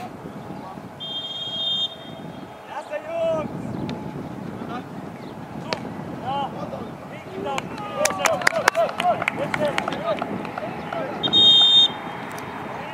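A referee's whistle blows short sharp blasts on an open football pitch.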